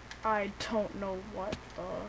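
A pickaxe chips at a stone block.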